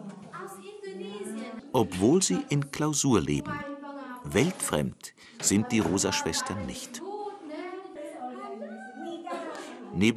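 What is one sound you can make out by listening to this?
Women talk cheerfully up close.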